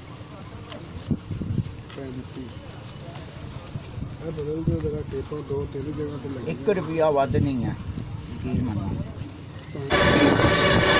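Banknotes rustle as they are counted by hand.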